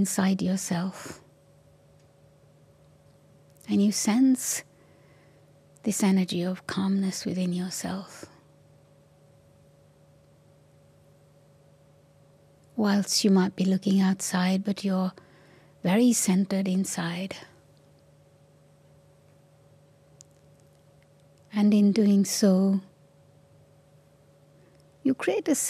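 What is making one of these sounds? An elderly woman speaks slowly and calmly into a microphone, with long pauses.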